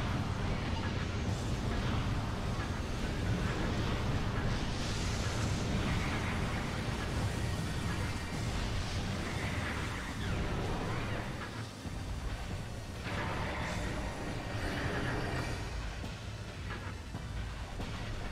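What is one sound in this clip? Explosions burst and crackle close by.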